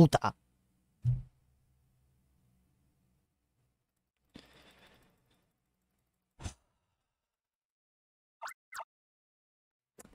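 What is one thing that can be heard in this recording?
Short electronic game sound effects beep and chirp.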